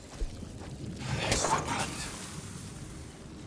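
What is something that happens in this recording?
An explosion bursts with a loud rushing whoosh.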